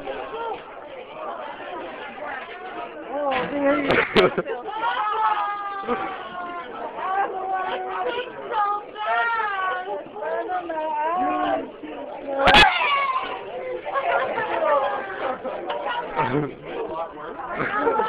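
Young people talk and shout over each other in an echoing hallway.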